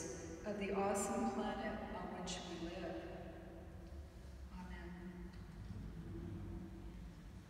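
A middle-aged woman sings slowly from a short distance away in a large echoing hall.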